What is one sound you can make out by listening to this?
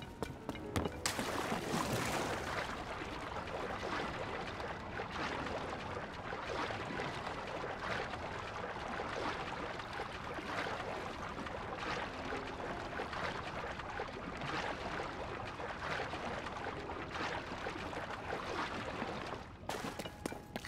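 Water splashes steadily as a swimmer paddles through it.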